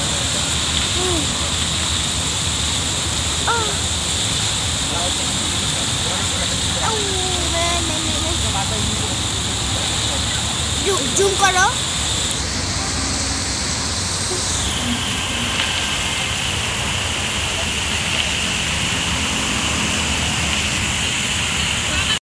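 Fountain water splashes steadily into a pool outdoors.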